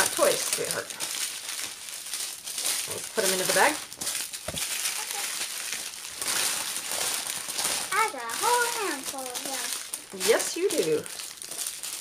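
A young child speaks in a high voice nearby.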